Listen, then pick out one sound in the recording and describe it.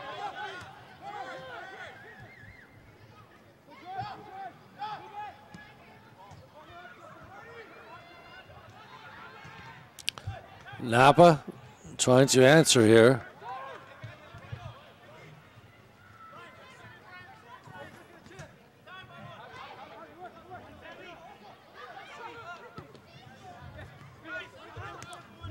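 Young men shout to each other across an open playing field.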